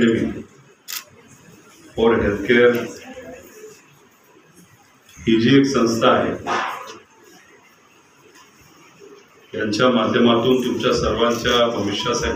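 A man speaks into a microphone through a loudspeaker in a room, pausing between phrases.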